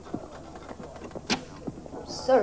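A door latch clicks.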